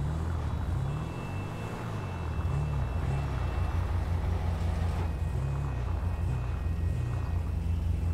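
A sports car engine hums low as the car rolls slowly forward.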